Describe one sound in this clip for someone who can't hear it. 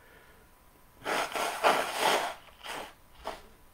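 A man blows his nose loudly into a tissue.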